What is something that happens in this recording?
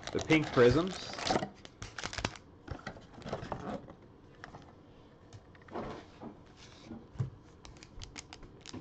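Foil card packs crinkle and rustle as they are handled close by.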